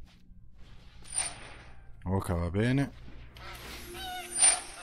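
A card lands on the table with a swooshing game sound effect.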